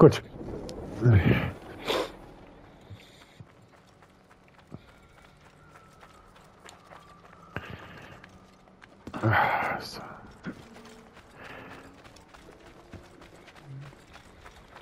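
Footsteps crunch quickly on loose gravel and rock.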